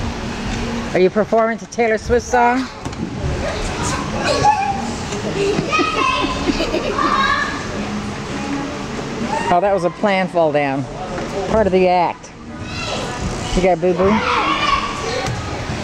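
A young girl squeals and chatters nearby.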